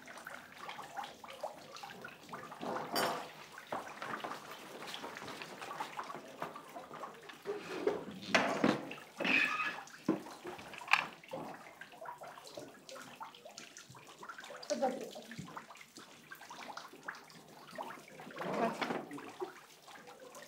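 Cups and dishes clink.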